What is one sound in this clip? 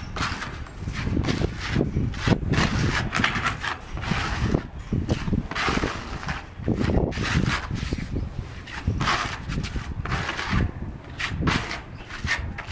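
A trowel scrapes and spreads wet mortar.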